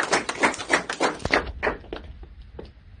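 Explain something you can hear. A few people clap their hands close by.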